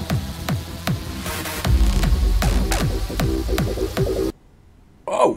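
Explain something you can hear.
Loud rock music with drums plays, then stops abruptly.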